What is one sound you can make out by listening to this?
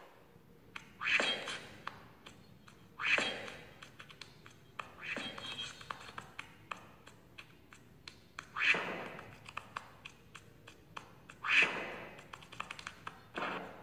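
Short whooshing game sound effects play from a tablet again and again.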